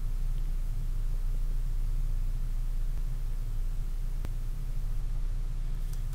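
A felt marker squeaks and scratches on paper.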